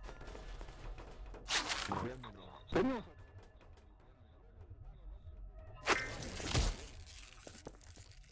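Glass panels shatter and clatter as they fall.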